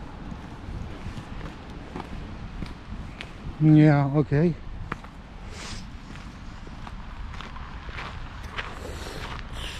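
Footsteps tap along a paved path outdoors.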